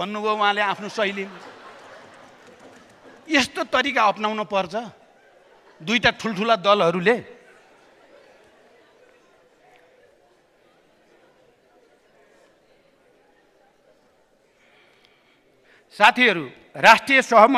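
An elderly man speaks with pauses into a microphone in a large hall.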